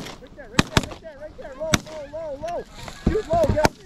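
Geese honk repeatedly as they fly overhead.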